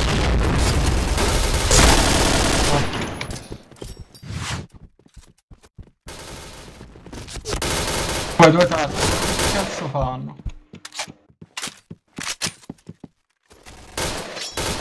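A young man talks into a headset microphone with animation.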